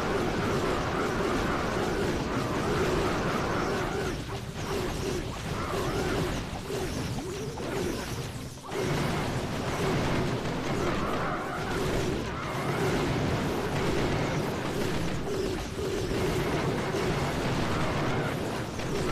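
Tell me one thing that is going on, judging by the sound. Game battle sounds of troops attacking and explosions play continuously.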